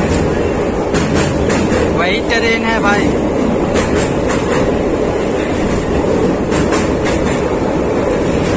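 Wheels clatter rhythmically over rail joints.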